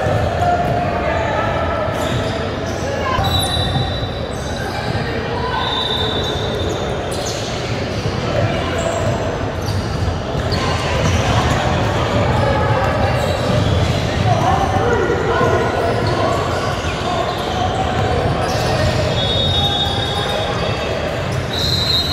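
Young players call out and talk across a large echoing gym.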